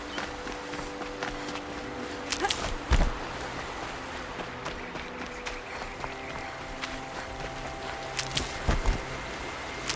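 Footsteps thud and crunch on dry ground.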